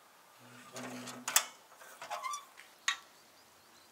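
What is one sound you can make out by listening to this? A metal stove door creaks and clanks shut.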